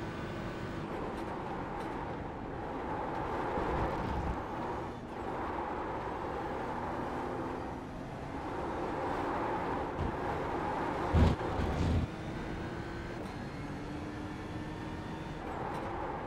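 A racing car's engine drops and rises as gears shift down and up.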